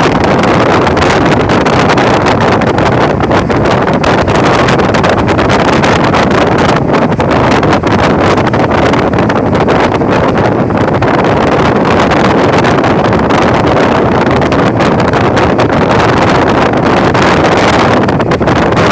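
Wind and road noise roar from a moving vehicle.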